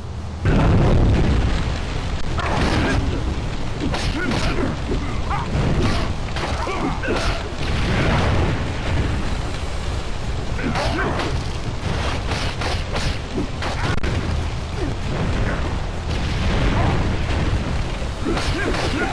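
Fire roars steadily.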